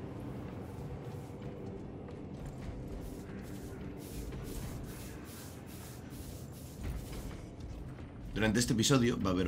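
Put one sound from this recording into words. Heavy armoured footsteps clank steadily on a metal floor.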